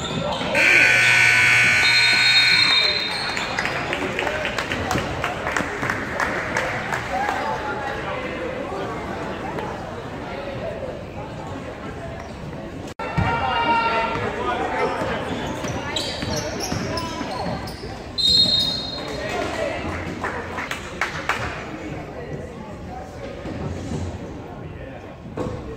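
A crowd cheers and shouts in a large echoing gym.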